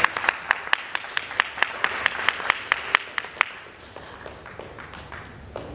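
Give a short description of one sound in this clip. An accordion ensemble plays a lively tune with sharp, rhythmic beats that turn softer partway through.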